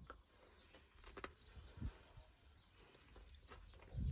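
A young man chews food with his mouth closed.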